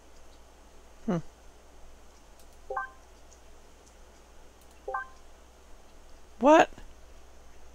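A game menu makes short electronic blips and swooshes.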